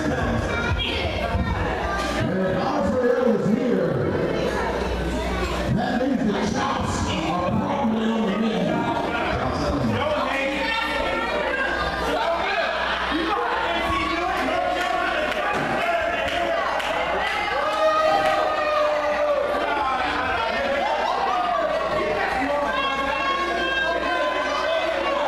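A crowd of spectators chatters and shouts nearby in an echoing hall.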